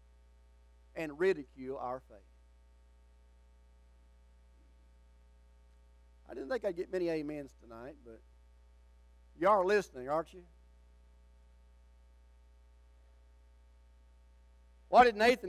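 An older man preaches with animation through a microphone, in short bursts with long pauses.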